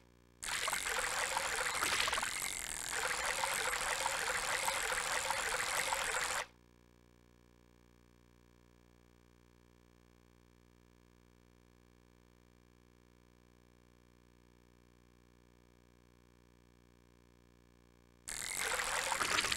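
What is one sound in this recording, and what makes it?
A fishing reel whirs steadily as line is wound in.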